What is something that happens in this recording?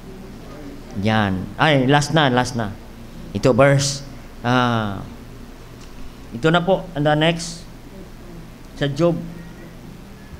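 A middle-aged man reads aloud calmly into a microphone, in short phrases with pauses.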